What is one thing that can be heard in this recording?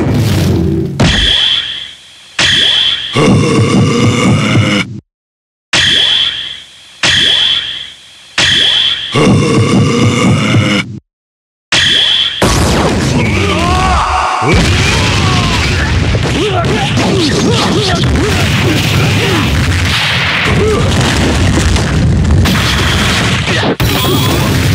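Fighting game punches and kicks land with sharp thuds and slaps.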